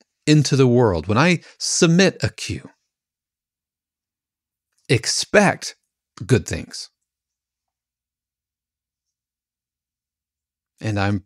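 A middle-aged man speaks calmly and closely into a microphone, pausing between phrases.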